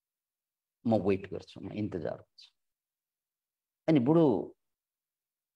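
A middle-aged man speaks calmly through an online call, in short phrases with pauses.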